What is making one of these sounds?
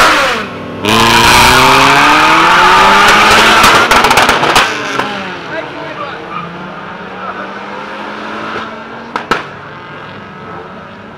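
A car engine roars loudly as it launches and revs hard, then fades into the distance.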